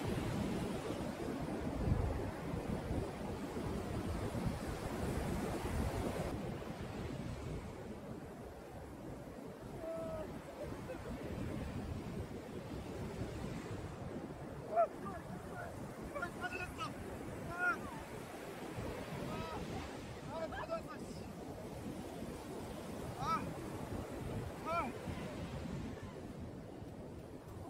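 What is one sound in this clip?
Waves crash and roll onto a beach in steady wind.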